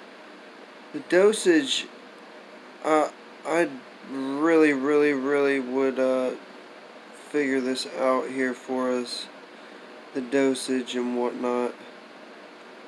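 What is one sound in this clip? A young man speaks calmly and close by, in short bursts.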